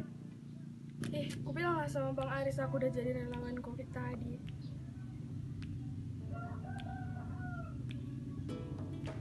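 A teenage girl speaks quietly nearby.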